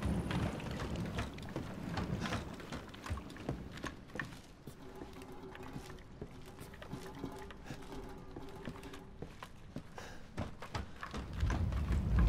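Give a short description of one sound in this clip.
Footsteps thud and creak on wooden floorboards.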